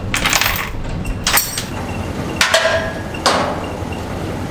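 Metal clanks sharply.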